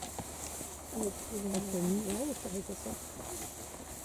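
Children's voices chatter quietly nearby.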